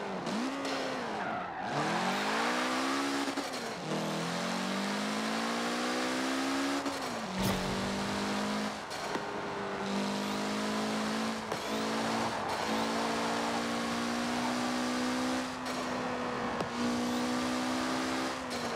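A sports car engine revs hard, rising and dropping in pitch through gear changes.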